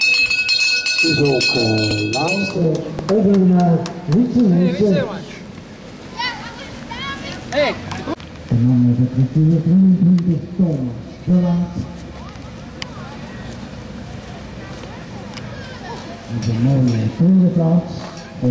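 A man cheers and shouts with animation close by.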